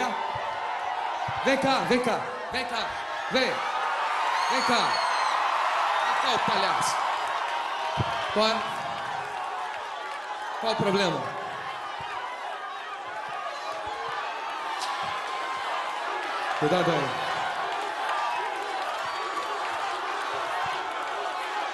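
A crowd cheers and shouts in a large hall.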